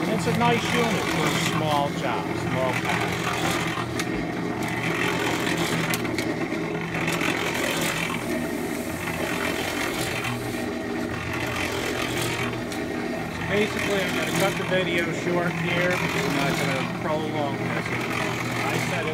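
An electric cement mixer motor hums steadily.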